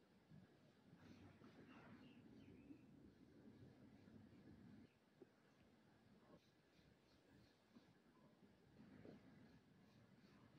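A small kitten mews softly up close.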